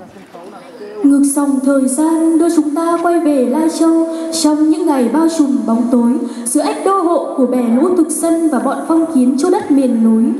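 Loud music plays through loudspeakers in a large hall.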